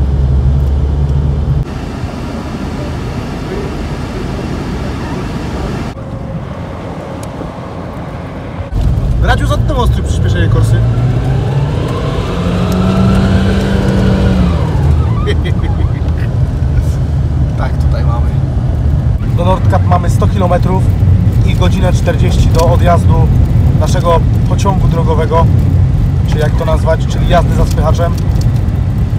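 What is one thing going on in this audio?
Tyres rumble over a snowy road.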